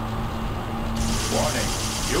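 An electric bolt crackles and buzzes loudly.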